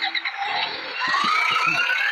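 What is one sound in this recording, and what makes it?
A tractor engine rumbles and revs up.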